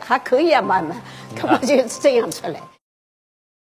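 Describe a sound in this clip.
An elderly woman speaks with animation into a nearby microphone.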